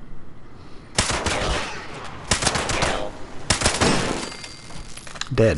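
A rifle fires single loud shots that echo.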